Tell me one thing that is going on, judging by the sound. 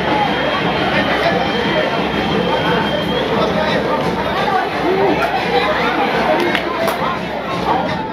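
A crowd of spectators cheers and chatters steadily in an open stadium.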